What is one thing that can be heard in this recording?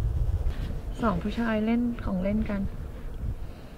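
A young woman speaks briefly nearby in a calm voice.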